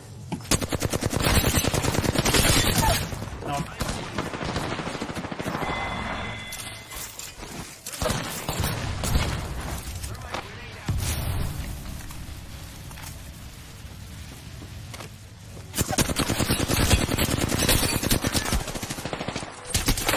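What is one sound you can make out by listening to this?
Automatic gunfire rattles in rapid bursts in a video game.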